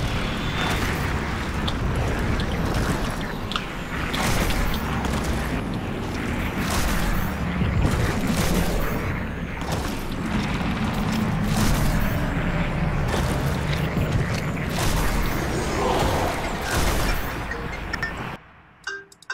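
Heavy footsteps crunch over rough ground.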